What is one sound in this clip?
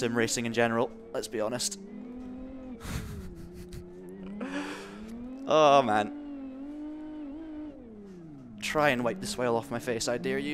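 A racing car engine revs and whines through gear changes.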